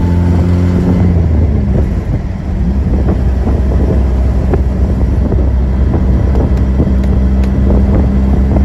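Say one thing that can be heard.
Wind buffets loudly past the open car.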